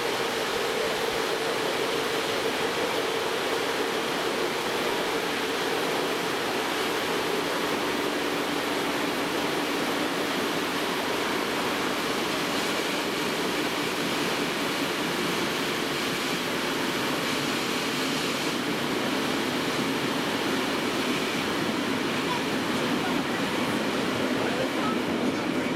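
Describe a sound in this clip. Wind rushes past an open train window.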